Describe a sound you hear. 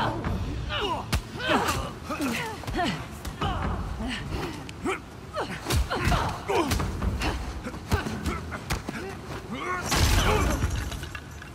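A woman grunts and cries out with effort.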